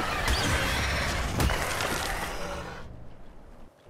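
Large wings beat heavily in flight.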